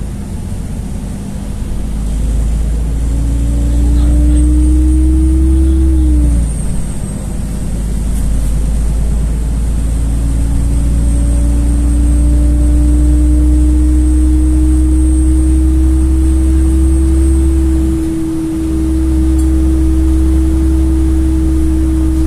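A vehicle's engine hums steadily from inside while driving.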